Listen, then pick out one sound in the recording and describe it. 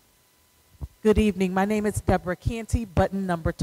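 A woman speaks loudly and calmly through a microphone.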